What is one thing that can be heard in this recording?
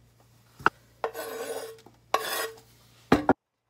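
Cut olives slide off a wooden board into a bowl.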